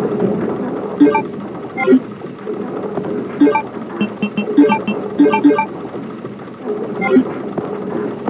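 Short electronic menu beeps chime in a video game.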